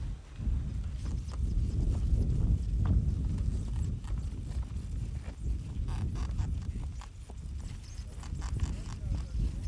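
Footsteps crunch on loose rocky ground.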